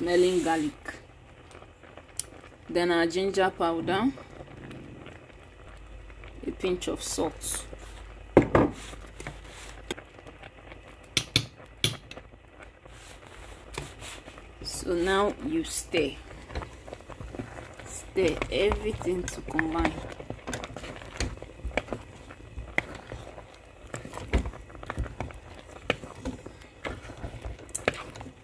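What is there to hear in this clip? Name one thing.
Liquid bubbles and boils in a pot.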